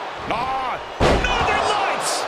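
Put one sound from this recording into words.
A body slams onto a mat with a heavy thud.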